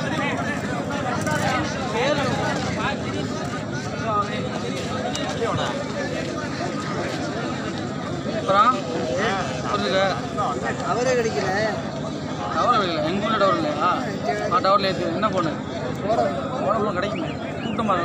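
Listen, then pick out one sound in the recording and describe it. A large outdoor crowd of young men shouts and cheers.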